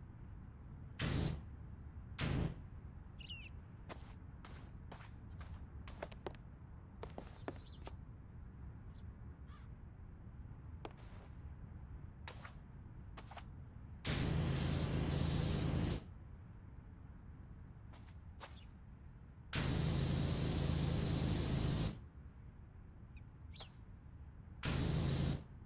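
A pressure washer sprays water in short hissing bursts.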